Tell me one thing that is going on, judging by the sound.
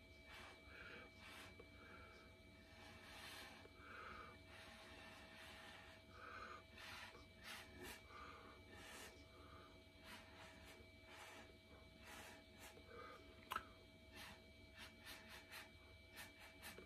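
A wooden stick dabs and scrapes softly on a painted canvas.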